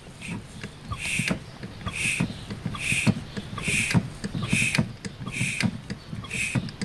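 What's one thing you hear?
A vacuum actuator on an engine clicks and hisses in a steady rhythm.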